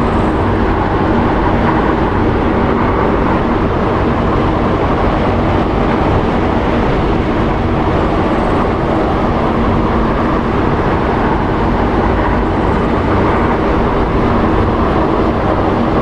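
Propeller engines of an aircraft roar loudly and steadily nearby.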